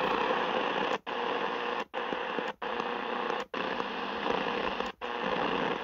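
A radio's hiss breaks off in brief silent gaps as it is tuned.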